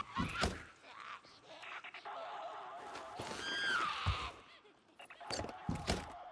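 A crate lid clicks open.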